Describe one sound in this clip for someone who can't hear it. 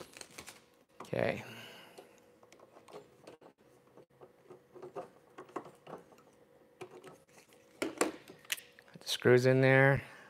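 Small parts click and tap as a man handles them.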